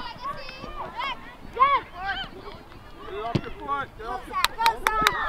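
Spectators and young players shout and call out across an open field.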